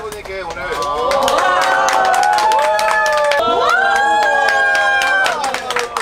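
A small group of people clap their hands.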